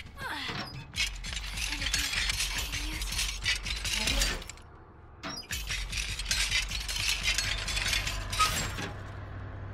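Objects rustle and clatter as a drawer is searched.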